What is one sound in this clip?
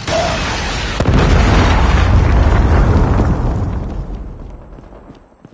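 A heavy explosion rumbles and slowly fades.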